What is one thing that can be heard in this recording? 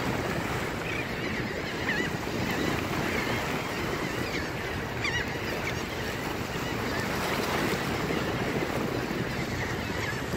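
Waves lap and splash against rocks.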